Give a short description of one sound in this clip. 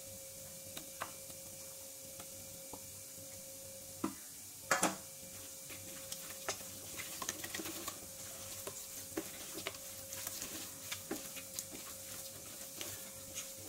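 A hand squelches raw meat against a metal bowl.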